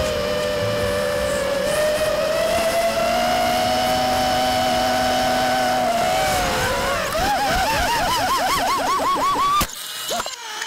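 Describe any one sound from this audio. A drone's motors whine steadily, then warble up and down as it tumbles.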